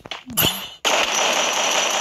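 An assault rifle fires a burst of shots.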